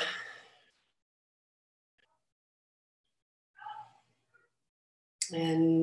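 A woman speaks calmly and close by, with pauses.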